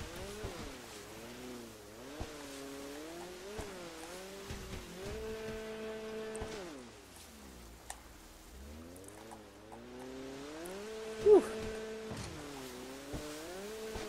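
A jet ski engine whines and revs up and down.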